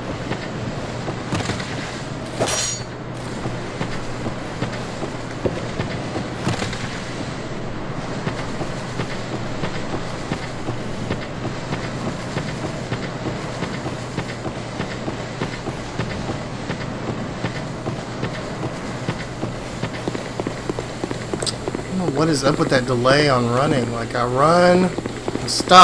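Footsteps crunch quickly over gravel and grass.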